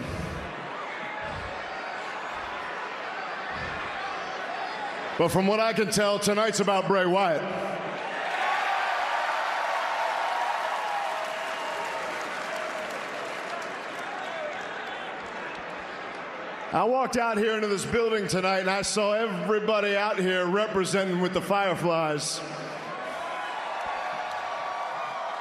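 A large crowd cheers and chants in a big echoing arena.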